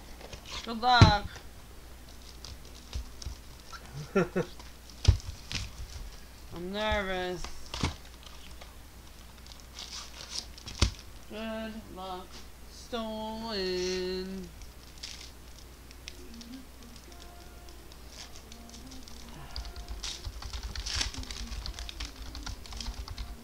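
Trading cards tap and click against a hard surface.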